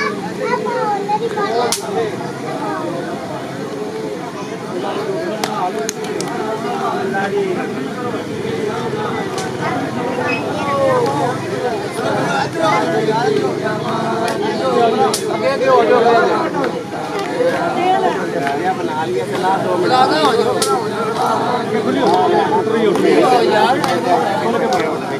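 A crowd of men chants and talks loudly outdoors.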